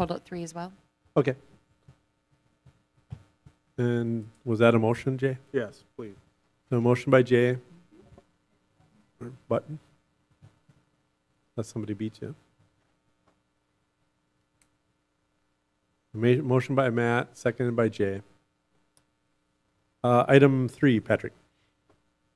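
A man speaks calmly through a microphone in a room with a slight echo.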